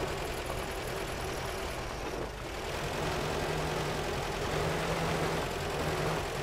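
A vehicle engine drones steadily while driving over rough ground.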